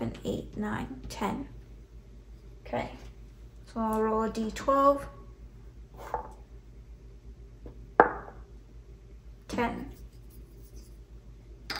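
Plastic game pieces tap and clack onto a board.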